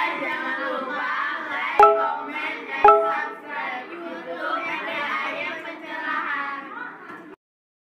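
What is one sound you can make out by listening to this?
Young women chat with animation close by.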